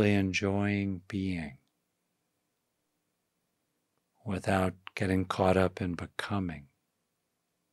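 An older man speaks calmly and closely into a microphone.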